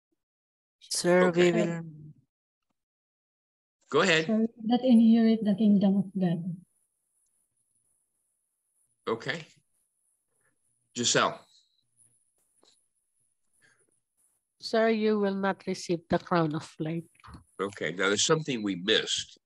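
Several adults speak in turns over an online call, with pauses between them.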